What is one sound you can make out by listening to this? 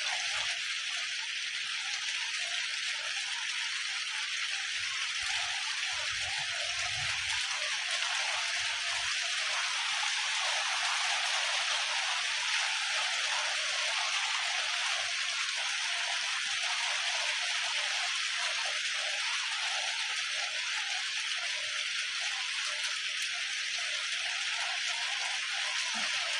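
Water splashes and sloshes as a boy wades.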